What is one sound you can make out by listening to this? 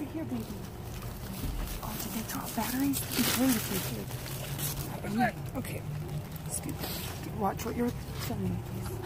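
A woman speaks close by.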